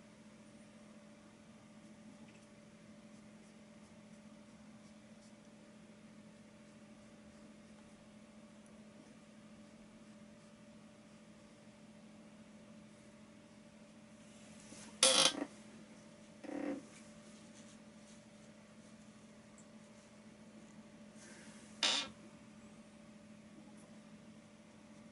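A paintbrush brushes softly across a canvas.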